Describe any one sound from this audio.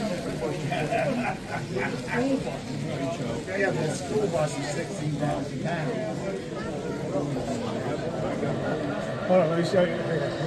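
A crowd of adults chatters.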